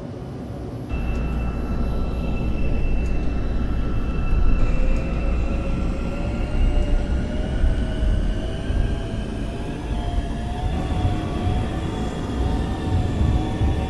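A train's motor hums and whines, rising in pitch as the train pulls away and picks up speed.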